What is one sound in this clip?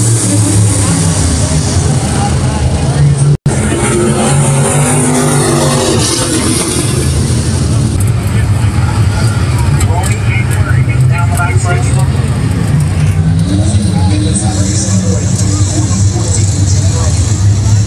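Race car engines roar around a dirt track.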